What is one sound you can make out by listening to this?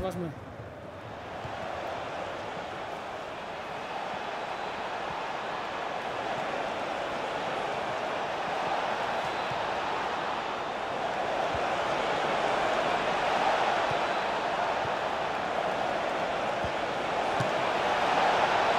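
A large stadium crowd roars steadily, swelling slowly.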